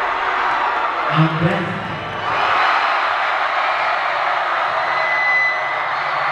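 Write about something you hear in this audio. A large crowd cheers and screams loudly in an echoing hall.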